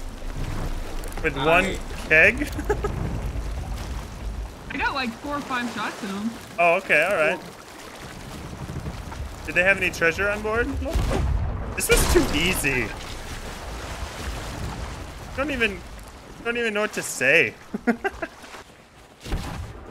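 Water sloshes and laps steadily close by.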